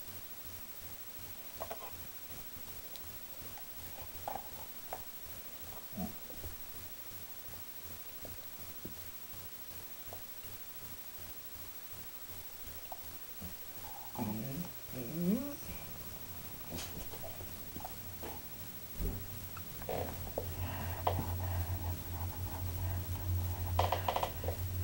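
A dog and a cat wrestle playfully, with soft rustling and thumps.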